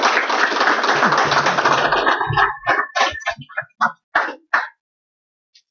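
An audience applauds in an echoing room.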